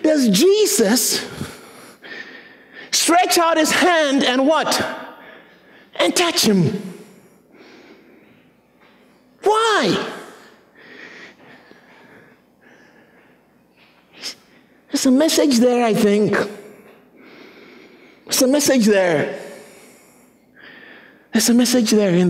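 A man preaches with animation through a microphone in an echoing hall, in loud bursts and pauses.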